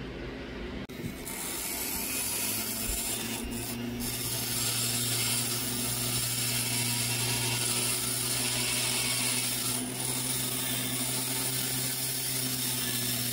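A small rotary tool whines steadily as it grinds stone.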